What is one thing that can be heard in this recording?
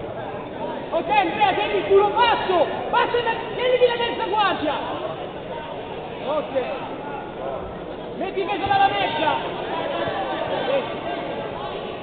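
Men shout loudly from close by in an echoing hall.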